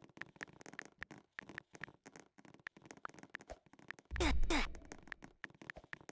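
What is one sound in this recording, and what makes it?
Soft keyboard taps click.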